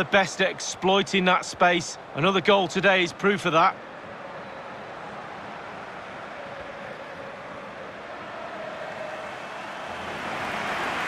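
A large stadium crowd murmurs and cheers, slowly growing louder.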